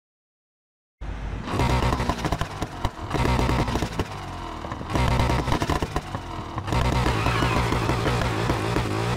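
A car exhaust pops and crackles.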